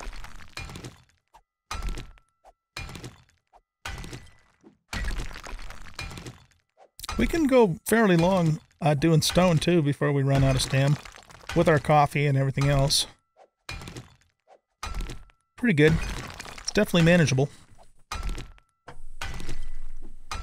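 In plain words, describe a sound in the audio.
A pickaxe strikes rock with repeated dull knocks.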